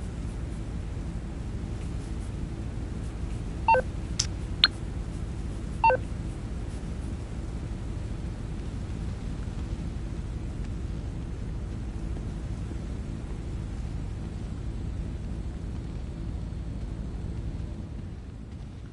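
Fans hum steadily.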